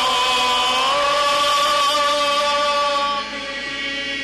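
A group of men sings a chant together outdoors.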